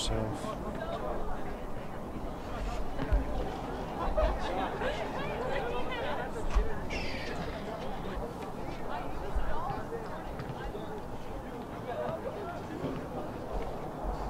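Young men shout and call out across an open field outdoors.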